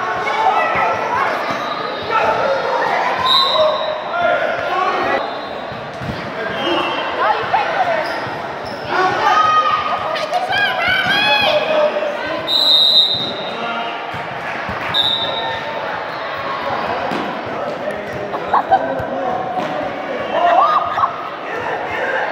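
Young players shout and call out to each other in a large echoing gym.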